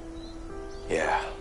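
A man answers quietly.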